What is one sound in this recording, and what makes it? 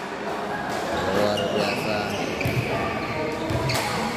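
Sneakers squeak on a hard court floor in a large echoing hall.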